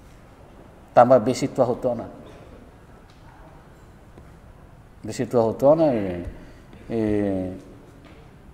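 A middle-aged man speaks calmly into a nearby microphone, with pauses.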